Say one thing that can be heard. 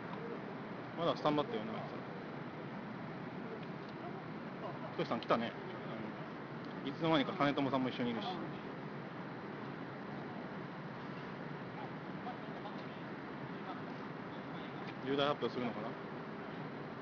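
Men talk in short bursts outdoors.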